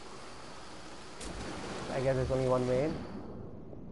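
Water splashes as a swimmer dives under.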